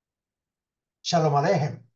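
An older man speaks with animation, close to a microphone.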